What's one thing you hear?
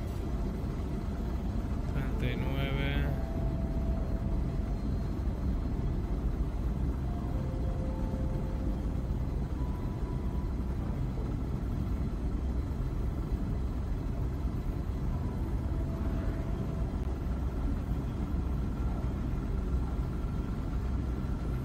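A spaceship engine roars steadily with a deep, rushing rumble.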